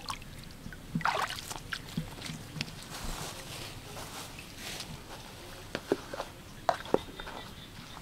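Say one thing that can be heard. A plastic bucket knocks and rattles as it is handled.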